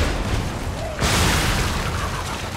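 Fiery sparks crackle and hiss.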